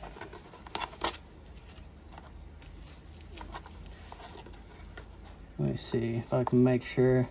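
Hands rummage through a cardboard box, rustling and scraping.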